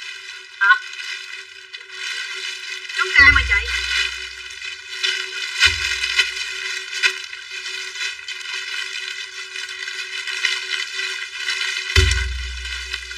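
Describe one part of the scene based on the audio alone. Plastic bags rustle and crinkle.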